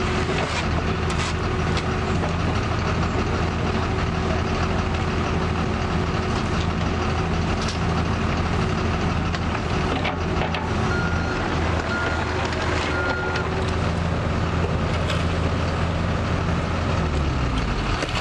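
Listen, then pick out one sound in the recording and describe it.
The diesel engine of a mini excavator runs.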